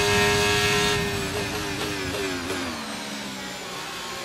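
A racing car engine drops in pitch as it shifts down under braking.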